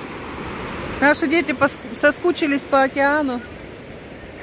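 A young girl calls out loudly nearby.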